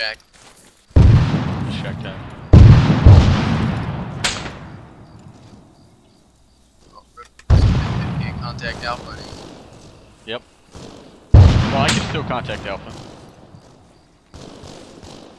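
Loud rifle shots crack and roll away in long echoes.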